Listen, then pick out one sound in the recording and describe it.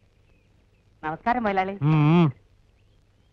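A man calls out loudly nearby.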